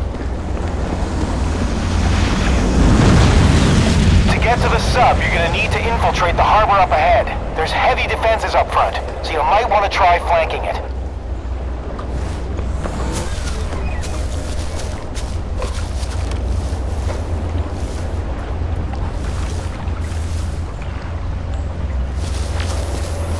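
Footsteps crunch on a dirt road.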